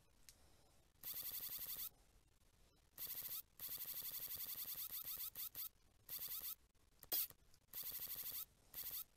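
A small robot clatters along in quick mechanical steps, in short bursts.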